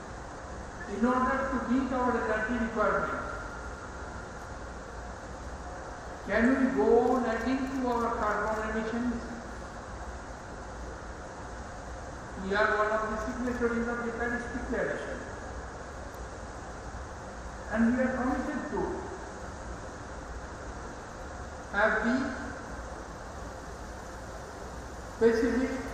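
An elderly man speaks slowly through a microphone and loudspeakers, with long pauses, in a large echoing space.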